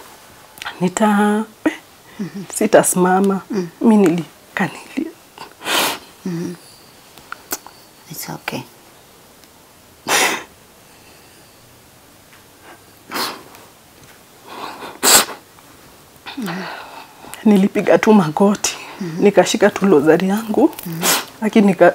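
A young woman speaks emotionally and haltingly, close to a microphone.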